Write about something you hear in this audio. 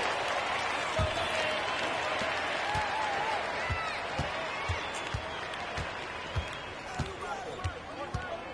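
A basketball bounces on a hardwood court in a steady rhythm.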